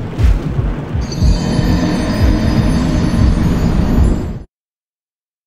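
A heavy death toll booms and rings out.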